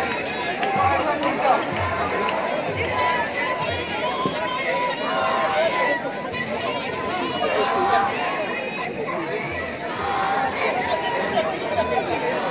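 A large crowd chants together loudly outdoors.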